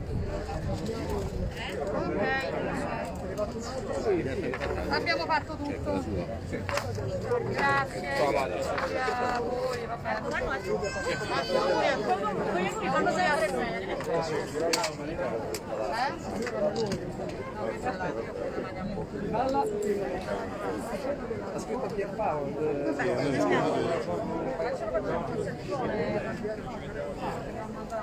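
A crowd of men and women talk over one another close by, outdoors.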